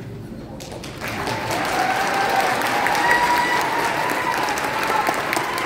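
A choir of children sings.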